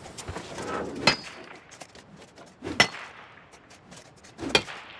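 A pickaxe strikes rock with sharp, ringing clangs.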